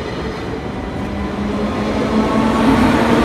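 A locomotive hums loudly as it passes close by.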